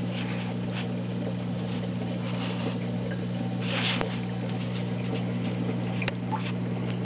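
An aquarium pump hums steadily.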